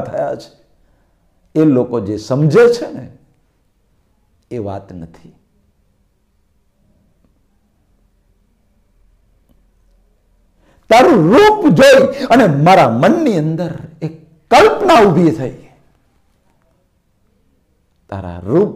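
A middle-aged man speaks close by, in pauses and then with animation.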